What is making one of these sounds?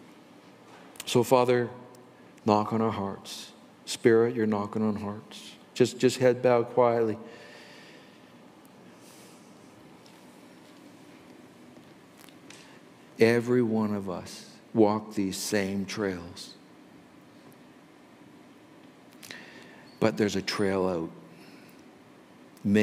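An elderly man speaks slowly and calmly through a microphone in a large echoing hall, with long pauses.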